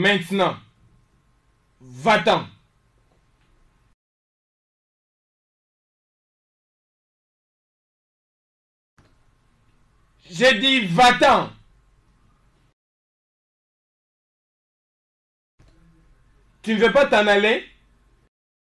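A man speaks forcefully in short, loud bursts nearby.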